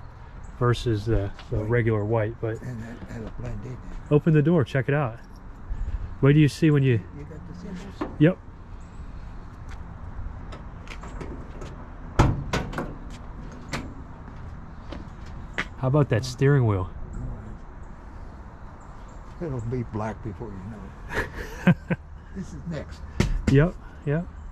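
An elderly man talks calmly close by.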